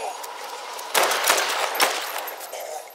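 A rifle fires loud shots.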